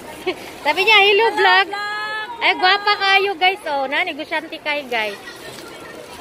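A young woman talks cheerfully and animatedly close by.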